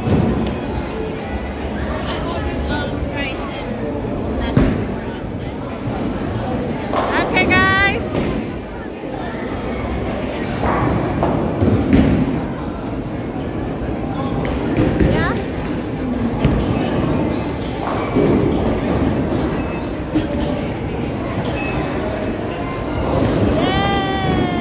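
A noisy crowd chatters in a large echoing hall.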